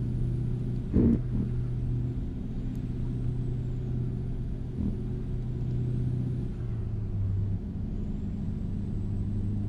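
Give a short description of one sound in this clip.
A truck engine drones steadily while driving on a highway.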